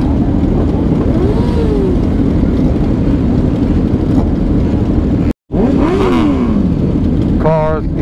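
A motorcycle engine revs up and down nearby.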